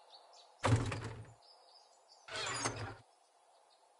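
A wooden chest opens with a thud.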